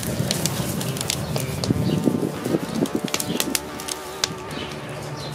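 Meat sizzles and a fire crackles on a grill.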